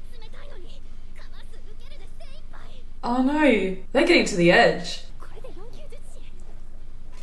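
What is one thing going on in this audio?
A young woman talks calmly and cheerfully close to a microphone.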